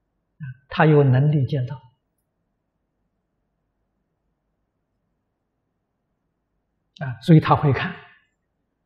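An elderly man speaks calmly and warmly into a close microphone, in short phrases with long silent pauses.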